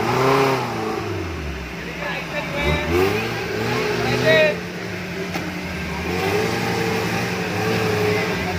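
An off-road jeep engine revs, straining in mud.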